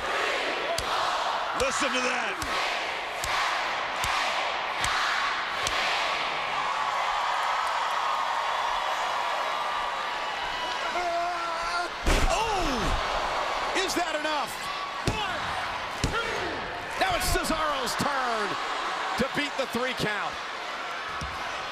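A large crowd cheers and roars in a big echoing arena.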